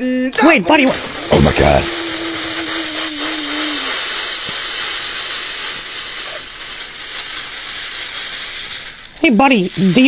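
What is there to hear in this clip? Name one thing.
Soda fizzes and foams loudly.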